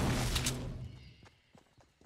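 A pickaxe strikes wood with a loud thud.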